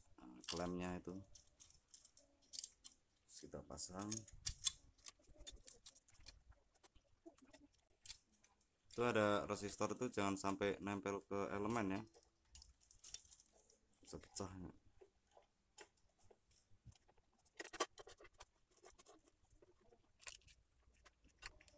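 Plastic parts click and knock as they are handled and taken apart.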